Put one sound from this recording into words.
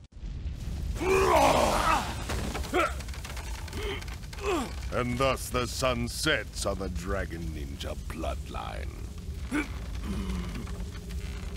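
A man speaks slowly in a deep, menacing voice.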